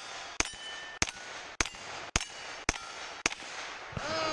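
A rifle fires rapid single shots outdoors.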